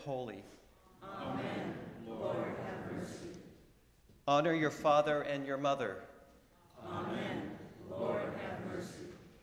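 A congregation of men and women recites a response together in unison in an echoing hall.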